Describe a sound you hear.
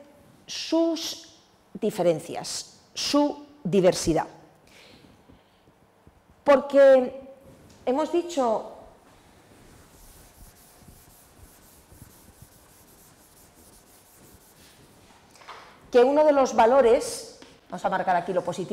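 A woman speaks calmly, as if lecturing.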